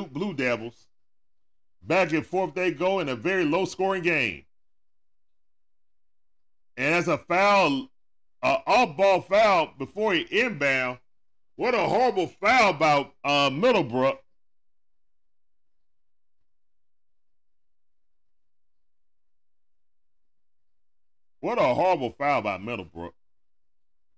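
A man talks with animation into a close microphone, pausing now and then.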